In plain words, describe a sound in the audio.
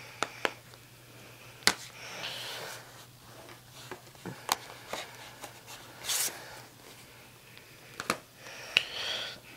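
Plastic game cases clack and rustle as they are handled.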